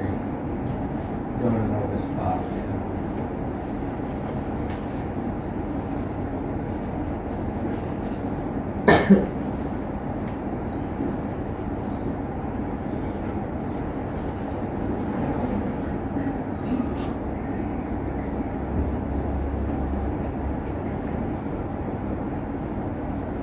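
An elderly man quietly murmurs prayers.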